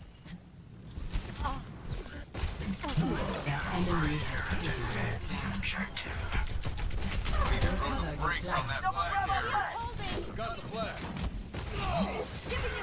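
Guns fire rapidly in a fierce fight.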